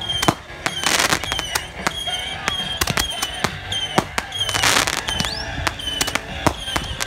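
Firework rockets whistle as they fly up.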